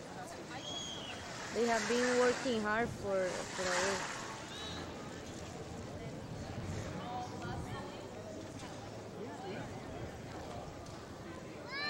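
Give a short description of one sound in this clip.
People chatter in the background outdoors.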